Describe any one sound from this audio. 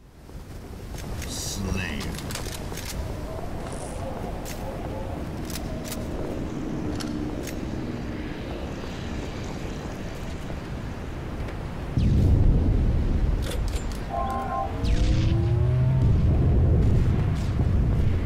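Heavy footsteps clank on metal floors.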